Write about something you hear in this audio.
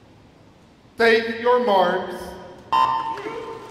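An electronic starting signal beeps loudly in a large echoing hall.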